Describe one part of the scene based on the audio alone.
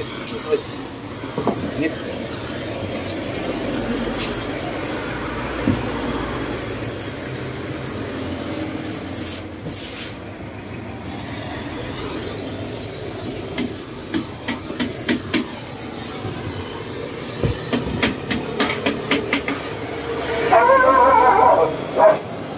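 A gas torch roars with a steady hiss.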